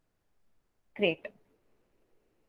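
A young woman speaks briefly through a microphone.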